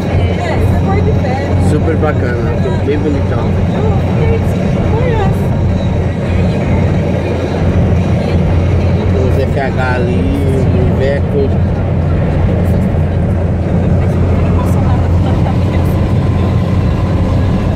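A car engine hums steadily inside a moving car.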